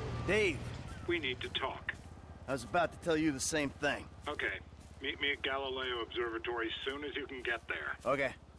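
A man talks with animation on a phone.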